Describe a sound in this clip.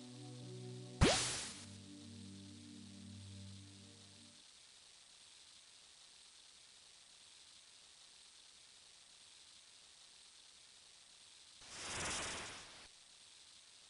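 A fishing line splashes into water.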